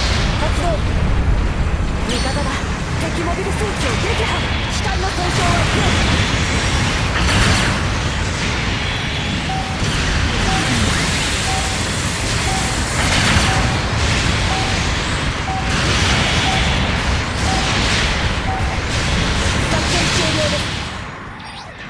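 Robot thrusters roar steadily.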